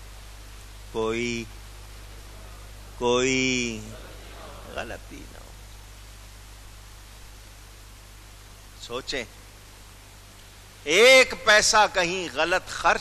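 A middle-aged man speaks into a microphone in short bursts, with long pauses.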